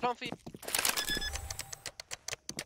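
Keypad buttons beep quickly as they are pressed.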